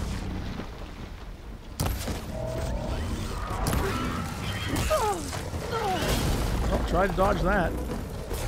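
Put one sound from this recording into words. Fire roars and crackles.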